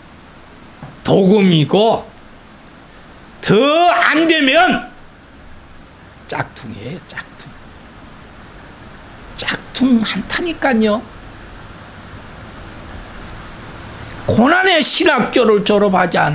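An elderly man speaks with animation into a microphone, in bursts with pauses.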